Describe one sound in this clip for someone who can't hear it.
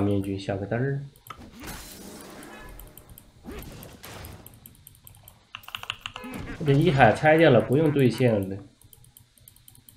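Short, sharp game effect sounds ring out in bursts.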